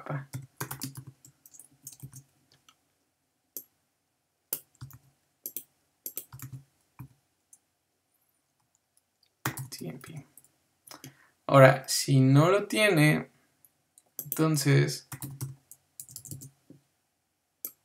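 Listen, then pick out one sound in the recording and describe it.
A young man speaks calmly and haltingly, close to a microphone.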